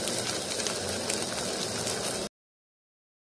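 Food sizzles and crackles as it fries in a pan.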